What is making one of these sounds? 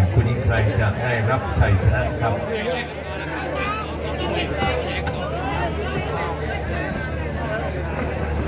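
A crowd of spectators chatters loudly outdoors.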